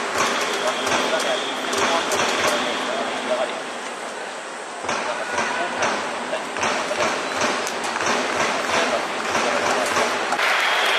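A large stadium crowd murmurs and chatters in the distance.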